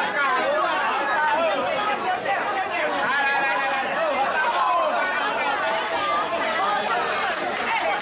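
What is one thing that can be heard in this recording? A middle-aged woman shouts with animation close by.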